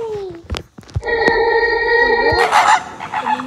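A dolphin whistles and chatters.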